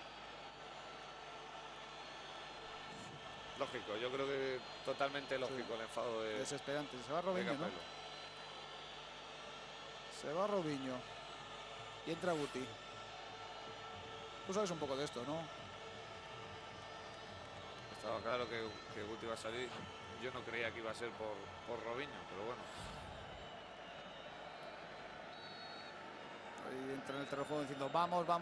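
A large stadium crowd murmurs far off.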